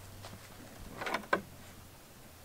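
A goat's hooves knock on wood.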